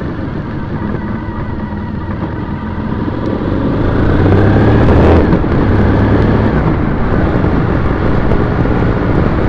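Tyres hum and crunch steadily on rough asphalt.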